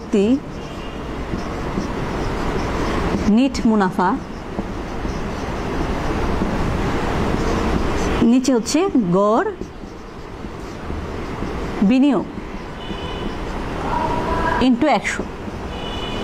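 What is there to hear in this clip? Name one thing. A marker squeaks against a whiteboard in short strokes.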